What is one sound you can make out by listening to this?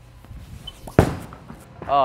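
A bowling ball thuds onto a wooden lane.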